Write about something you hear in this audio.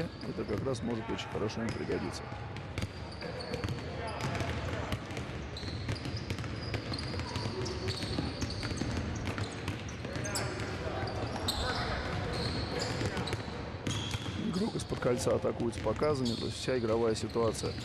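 Basketballs bounce repeatedly on a hard floor in a large echoing hall.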